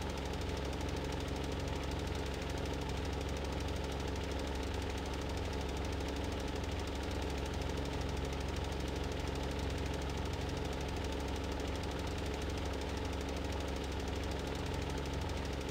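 A tractor engine rumbles steadily.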